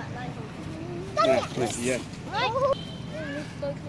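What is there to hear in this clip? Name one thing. A young girl cries out in alarm.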